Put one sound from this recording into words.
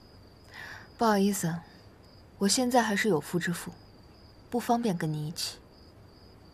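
A young woman speaks calmly and firmly, close by.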